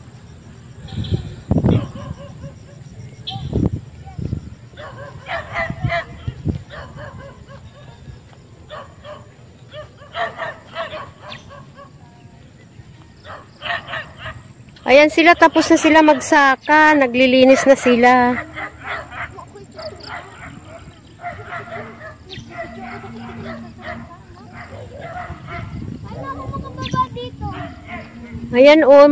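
A young woman talks casually nearby outdoors.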